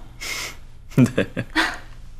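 A young man laughs softly close by.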